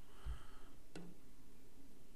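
A cue strikes a pool ball with a sharp click.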